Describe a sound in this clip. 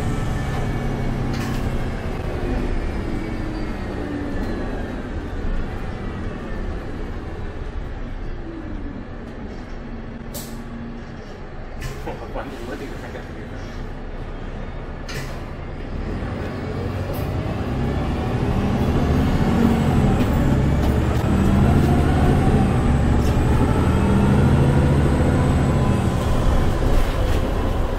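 A bus engine hums and whines as the bus drives, rising in pitch as it speeds up.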